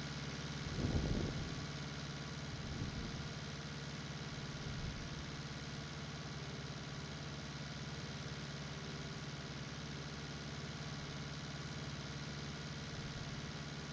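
A tractor engine hums steadily from inside the cab.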